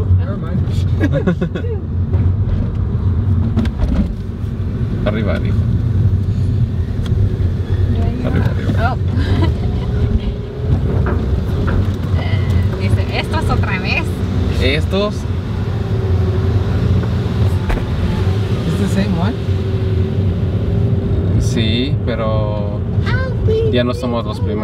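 A car engine hums steadily while driving slowly.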